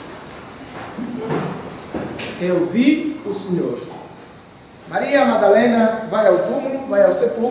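A man speaks calmly, in a room with a slight echo.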